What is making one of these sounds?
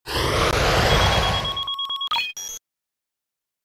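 A loud rushing blast of a game attack effect roars, then breaks into quick clicks.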